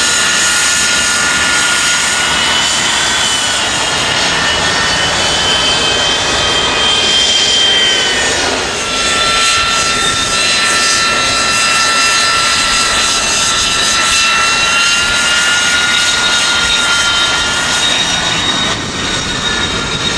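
A jet engine whines loudly and steadily as a plane taxis nearby.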